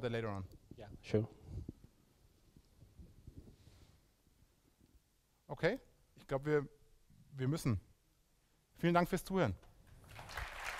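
A man speaks into a microphone in short bursts with pauses.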